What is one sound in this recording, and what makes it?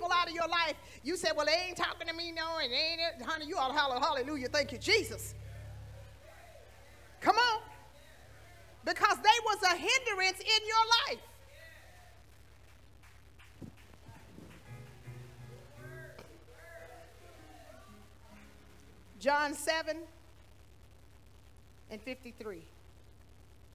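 A woman speaks with feeling into a microphone in a reverberant hall.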